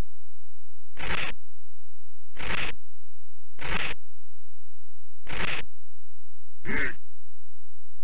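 Short electronic game sounds play as a menu selection changes.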